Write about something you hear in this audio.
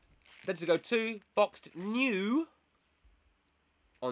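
Bubble wrap crinkles in a man's hands.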